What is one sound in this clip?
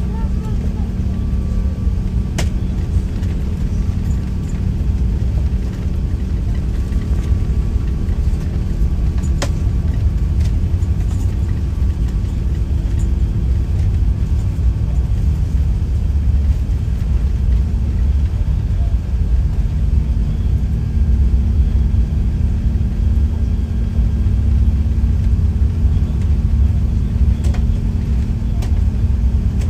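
A jet airliner's engines roar steadily as it speeds down a runway.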